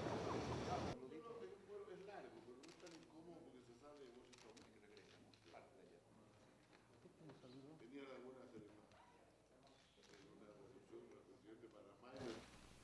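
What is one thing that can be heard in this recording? Men talk quietly in a room, heard from a distance.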